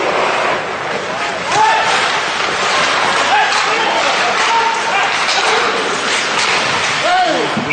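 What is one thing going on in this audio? Men shout to each other across an echoing rink.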